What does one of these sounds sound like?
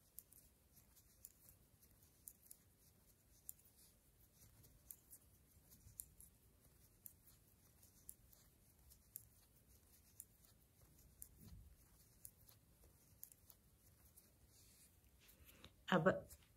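Knitting needles click softly and steadily.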